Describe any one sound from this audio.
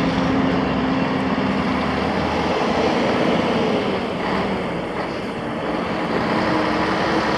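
A vehicle engine hums steadily while driving along a road.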